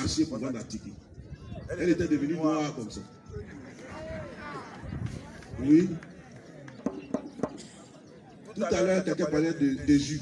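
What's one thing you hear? A man speaks with animation into a microphone outdoors, heard through a loudspeaker.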